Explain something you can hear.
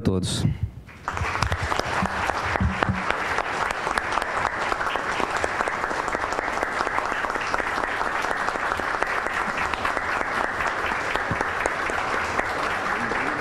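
A large audience applauds steadily.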